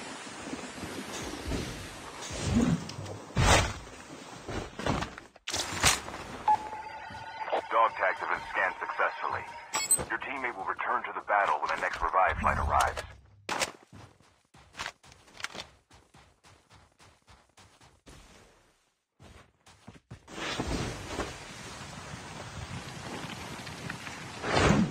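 A snowboard slides and hisses over snow.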